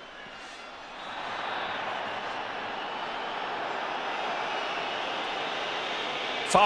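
A large stadium crowd suddenly roars and jeers loudly.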